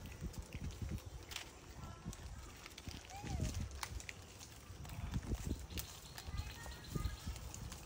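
A plastic wrapper crinkles as a monkey handles it.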